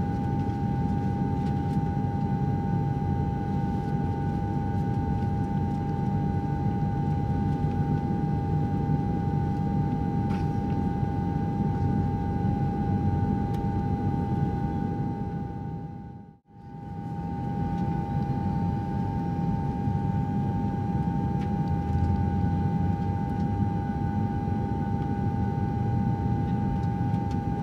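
An airliner's engines roar steadily in flight, heard from inside the cabin.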